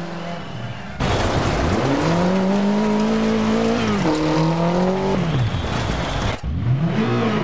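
Gravel sprays and rattles under a car's tyres.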